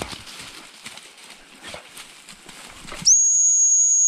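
Dogs rustle through long grass.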